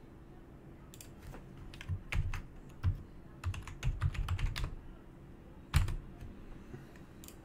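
Keyboard keys click in quick bursts.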